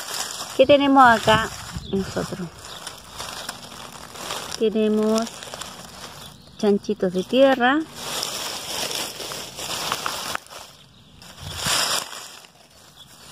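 Dry leaves and twigs rustle softly as fingers poke through them.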